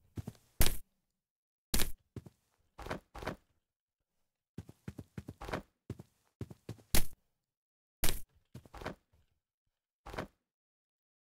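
Branches and leaves rustle in short bursts as someone pushes through brush.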